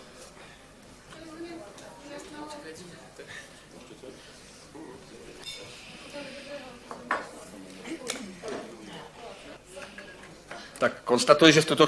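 Several people talk quietly at a distance.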